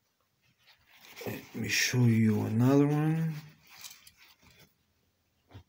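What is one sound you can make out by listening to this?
A paper tissue rustles as it rubs against a toy.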